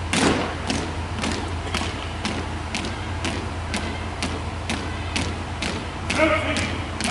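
Boots stamp in a steady rhythm on a hard floor in an echoing hall.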